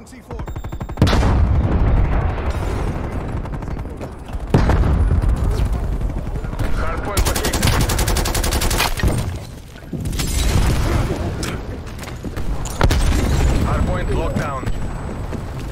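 Rapid gunfire cracks loudly.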